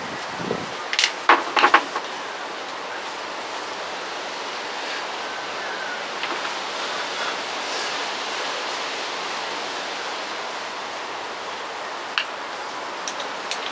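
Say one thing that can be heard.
Small plastic parts click and clatter as hands handle them.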